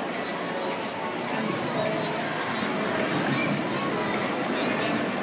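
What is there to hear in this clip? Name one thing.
A crowd chatters in the background.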